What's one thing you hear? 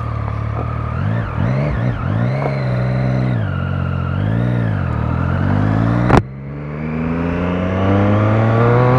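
A motorcycle engine revs up and down as gears shift.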